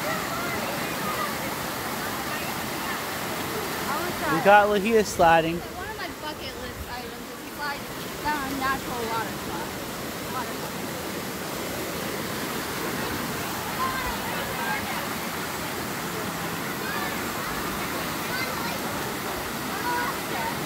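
Children shout and call out over the water.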